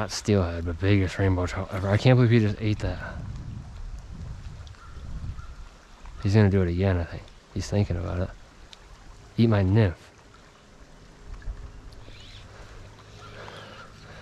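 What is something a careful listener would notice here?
A shallow stream flows and ripples gently.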